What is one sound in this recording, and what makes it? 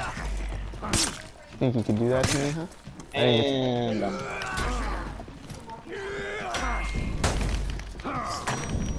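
Weapons clash and thud in a close fight.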